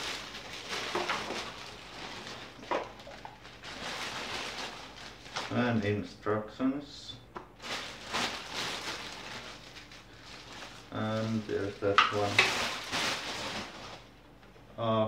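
Plastic wrapping rustles and crinkles close by.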